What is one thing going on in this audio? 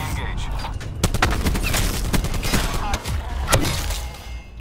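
Rapid gunfire crackles close by.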